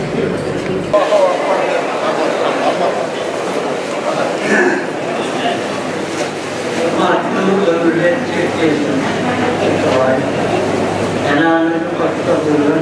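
An elderly man speaks into a microphone over a loudspeaker.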